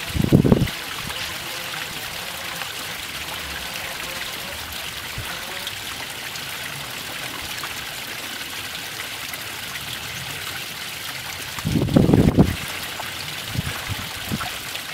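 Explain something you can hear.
A small waterfall splashes and trickles steadily over stones.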